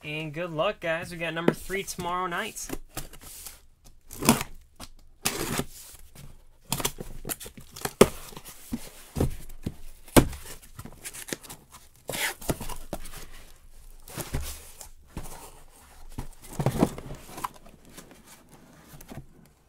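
Cardboard scrapes and thumps as a box is handled and opened.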